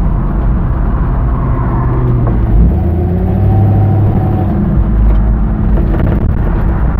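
A car engine hums and revs as the car turns.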